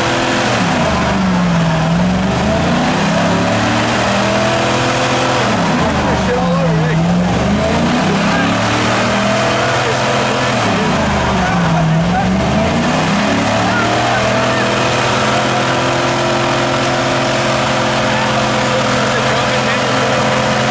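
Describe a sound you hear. A car engine revs hard, rising and falling again and again.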